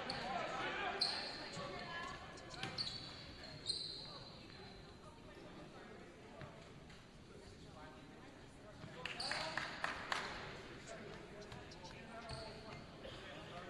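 Shoes squeak sharply on a gym floor.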